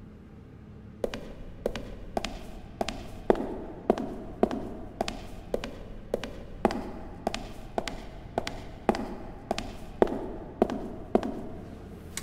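Footsteps echo steadily on a hard floor.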